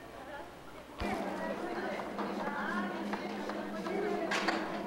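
A crowd of people chatter and murmur nearby in a large, echoing room.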